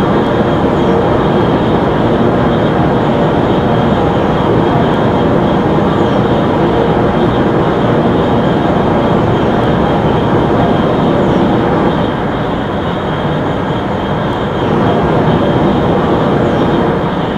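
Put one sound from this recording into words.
Train wheels rumble over the rails.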